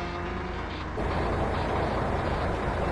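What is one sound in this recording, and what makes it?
Tyres roar loudly on a road, heard from outside a truck.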